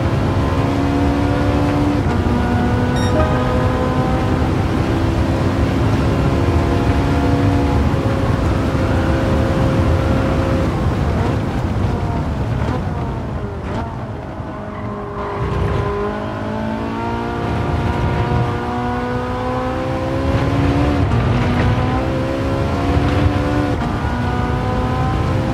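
A racing car engine roars at high revs, dropping in pitch while braking for a corner and rising again as it accelerates.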